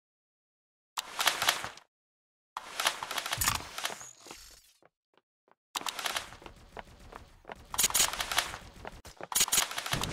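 Rapid gunfire crackles in bursts.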